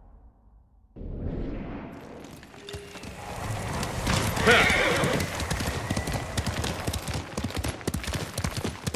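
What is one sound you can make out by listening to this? Horse hooves gallop on a dirt path.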